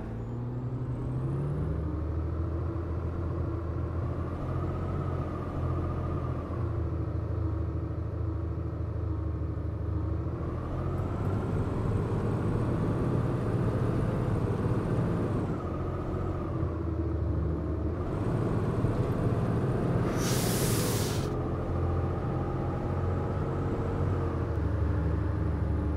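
The diesel engine of an articulated city bus drones as it drives along a street.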